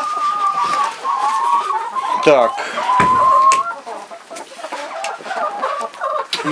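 Many hens cluck and squawk close by.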